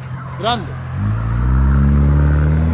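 A car engine revs up loudly.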